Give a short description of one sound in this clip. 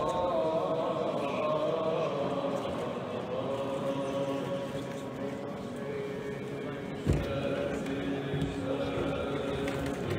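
Men chant in slow, held tones in a large echoing hall.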